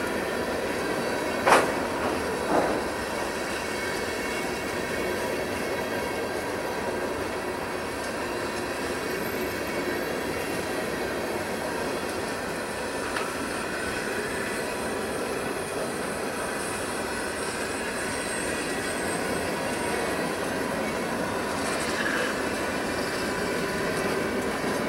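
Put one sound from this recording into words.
A freight train rumbles and clatters steadily past, close by.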